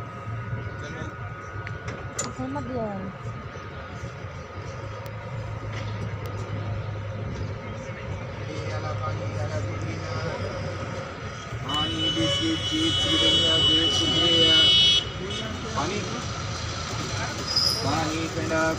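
A train rumbles and rattles steadily along the rails.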